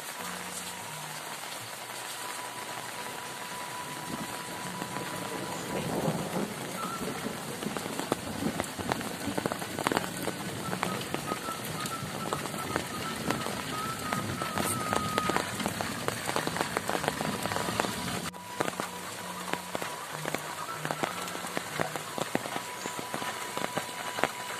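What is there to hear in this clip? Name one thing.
Steady rain falls and patters outdoors.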